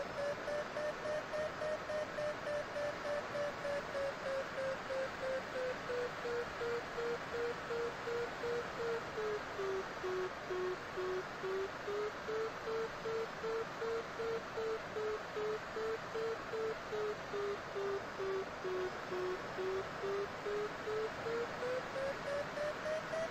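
An electronic variometer beeps rapidly in a steady pulse, its pitch slowly dropping and rising again.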